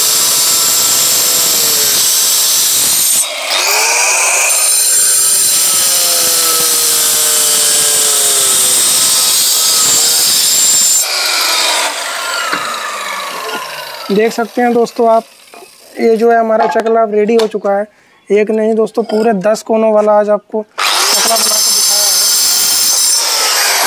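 A power saw whines loudly as it cuts through stone.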